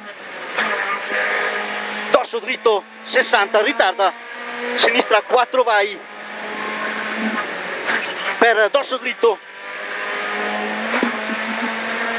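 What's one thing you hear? A rally car engine roars and revs hard.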